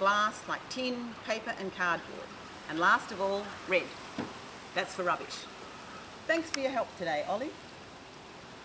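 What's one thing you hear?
A middle-aged woman speaks clearly and warmly into a close microphone.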